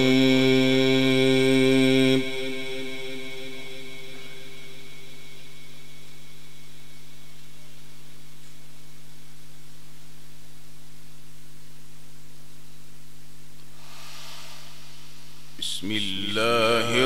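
A man chants a long held melodic note through a microphone, with echo.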